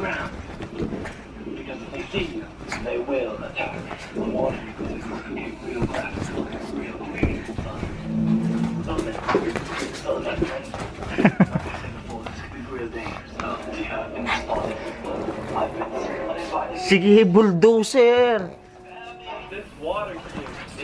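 A small dog snorts and growls playfully.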